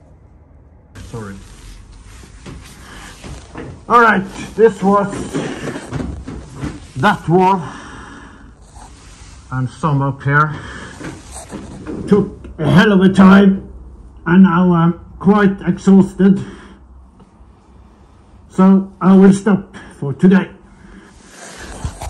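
A man talks up close in a muffled voice through a respirator mask.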